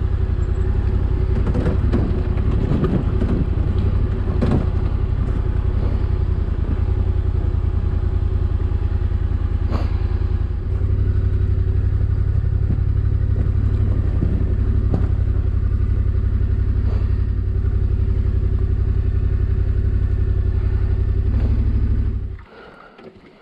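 Tyres crunch and bump over loose stones and dirt.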